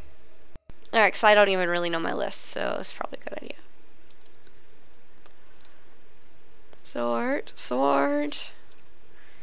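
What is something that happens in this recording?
A young woman talks casually into a close microphone.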